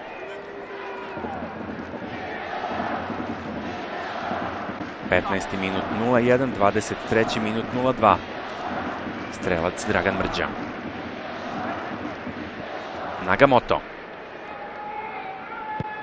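A large stadium crowd murmurs and roars steadily in the distance.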